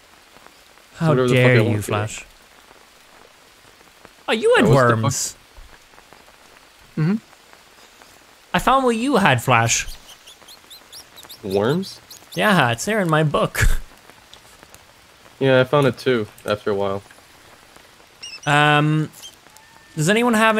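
A young man talks in short bursts, close to a microphone.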